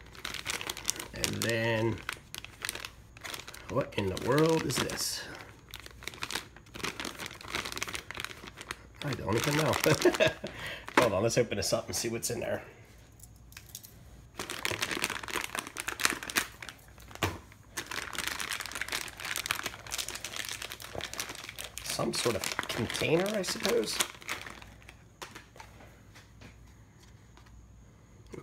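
Plastic packaging crinkles and rustles in handling.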